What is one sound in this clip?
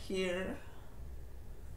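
A woman says a few words briefly, close to the microphone.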